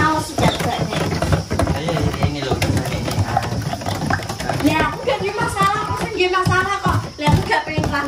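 A spoon scrapes and stirs batter in a plastic tub.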